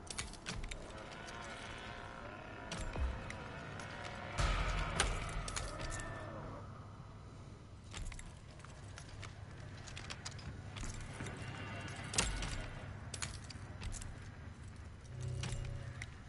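A metal door rattles as someone works at its lock.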